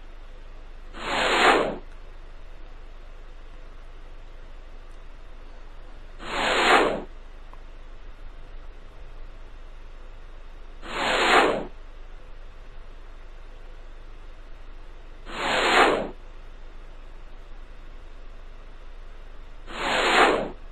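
A short whooshing sound effect swells and fades, again and again at even intervals.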